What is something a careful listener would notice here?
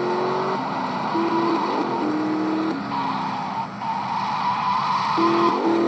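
A car engine hums steadily, its pitch jumping up and down as it shifts gears.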